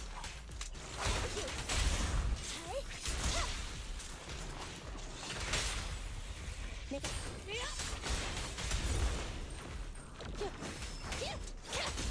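Blasts and explosions burst loudly.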